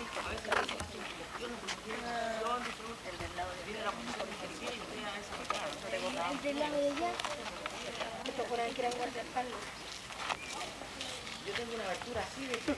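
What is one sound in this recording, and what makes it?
A young man talks casually nearby outdoors.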